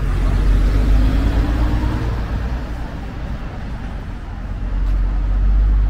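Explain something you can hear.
A lorry engine drones as the lorry drives by.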